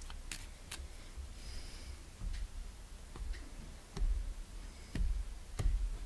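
Cards tap softly as they are laid down on a table.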